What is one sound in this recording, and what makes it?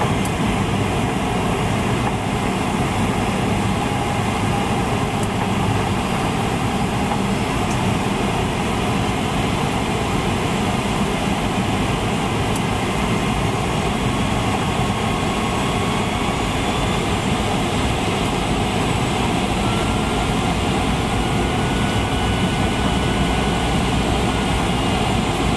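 An aircraft engine roars steadily with loud rushing wind.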